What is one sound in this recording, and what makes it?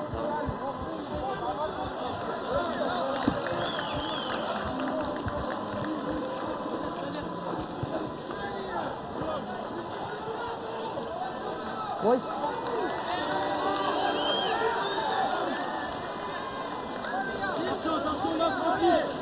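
A crowd chatters and calls out across an open stadium.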